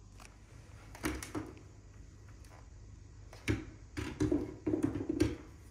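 A plastic hair dryer knocks and clatters against a hard counter as it is handled.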